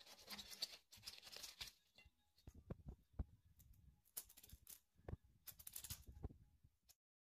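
Hands snap and tear crisp leaves off an artichoke.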